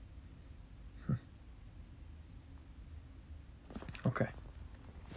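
A young man speaks briefly and quietly, close by.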